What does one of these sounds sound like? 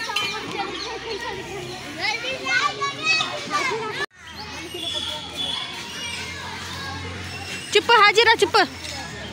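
Children shout and squeal excitedly nearby outdoors.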